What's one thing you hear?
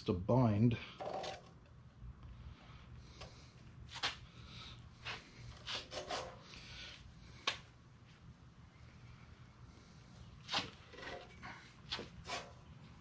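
A hand tool scrapes in strokes against a wooden ax handle.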